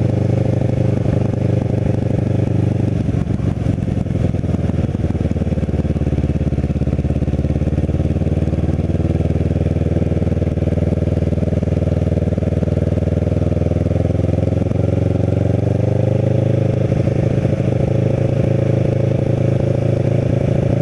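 A motorcycle engine hums steadily, its pitch dipping and rising as it slows and speeds up.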